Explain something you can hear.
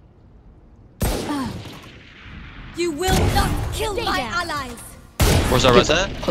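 A sniper rifle fires with sharp, loud cracks.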